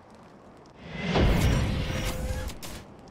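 An airship lands with a heavy thud.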